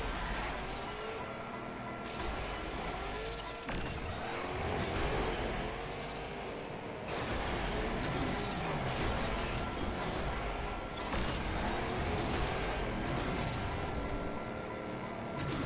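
Car engines rise and fall in pitch as the cars speed up and slow down.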